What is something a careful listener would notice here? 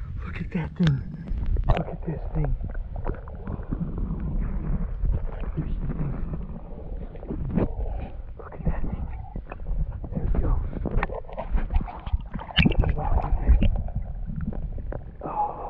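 Muffled underwater bubbling and knocking go on.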